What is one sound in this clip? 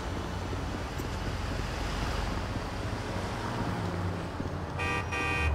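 A truck engine rumbles past.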